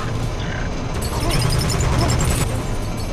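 A blast explodes with a loud roar.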